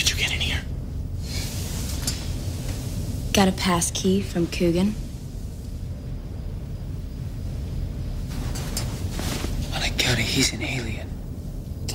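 A man speaks weakly, close by.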